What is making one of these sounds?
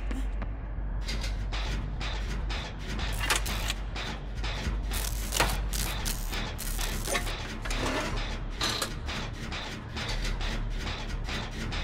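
Metal parts clank and rattle as a machine is repaired.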